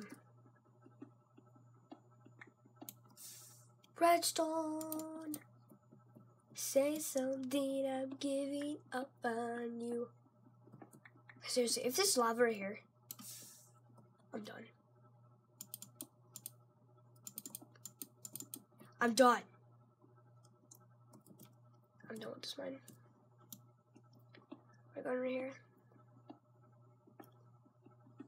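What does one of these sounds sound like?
Keys on a keyboard click softly now and then.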